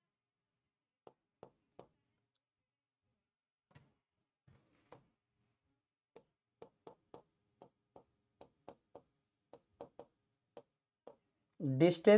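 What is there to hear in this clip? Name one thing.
A marker taps and scratches on a board.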